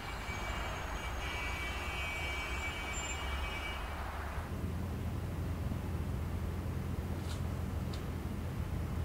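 A taxi engine rumbles low and steady.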